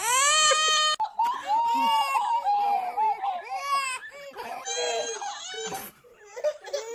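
A baby wails.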